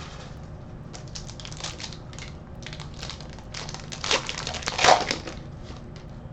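Trading cards rustle and slide as hands shuffle them.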